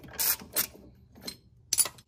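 A ratchet wrench clicks as it turns.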